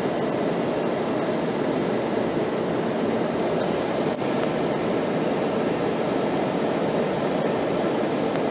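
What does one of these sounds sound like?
An aircraft engine roars steadily from inside the cabin.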